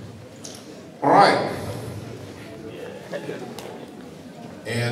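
An older man announces through a microphone and loudspeaker in a large echoing hall.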